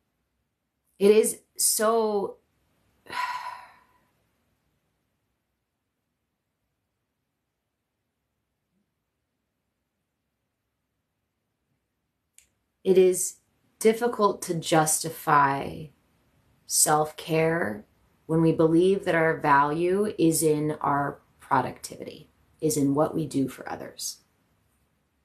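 A young woman speaks calmly and softly, close by.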